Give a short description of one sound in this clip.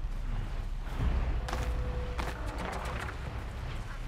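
Footsteps patter quickly over earth and leaves.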